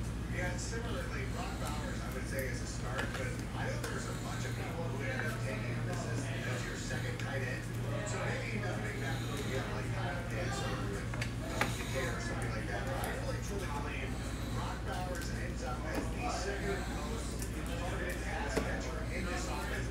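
Trading cards rustle and slide against each other in hands.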